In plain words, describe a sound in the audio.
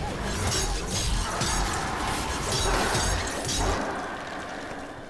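Rapid gunfire and energy blasts crackle.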